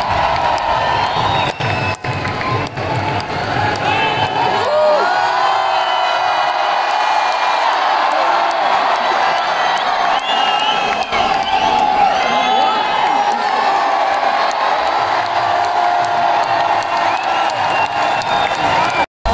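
A large crowd cheers and shouts loudly outdoors.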